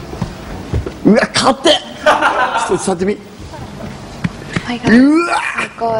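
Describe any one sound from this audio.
A young woman exclaims loudly.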